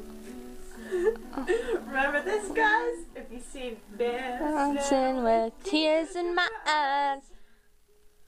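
A young woman sings loudly and playfully close by.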